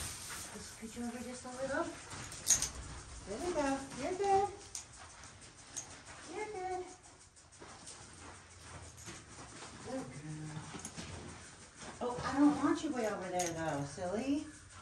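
A woman talks nearby in a light, chatty voice.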